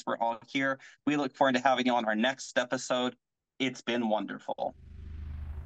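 A young man talks with animation over an online call.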